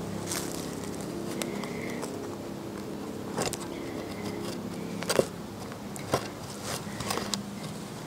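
A hand cultivator scrapes through loose soil.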